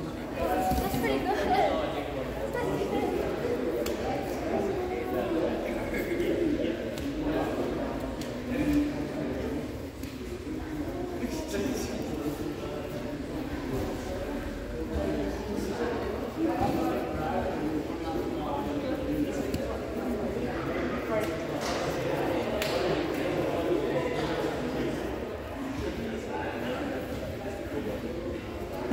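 Bodies thump and shuffle on padded mats.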